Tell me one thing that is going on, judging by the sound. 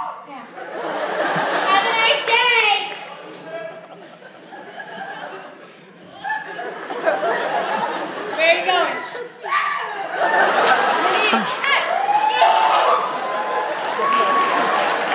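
A crowd of young people cheers and screams loudly in an echoing hall.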